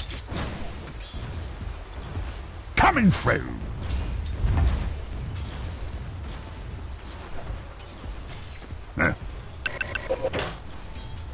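Game characters strike each other with blows and magic effects.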